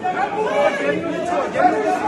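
A middle-aged woman shouts agitatedly close by.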